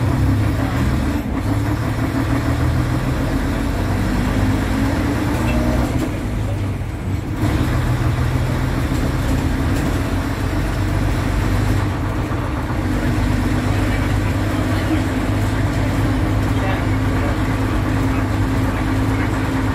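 A bus engine drones steadily with a low hum.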